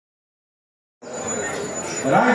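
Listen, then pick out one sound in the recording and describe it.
A man speaks into a microphone through loudspeakers.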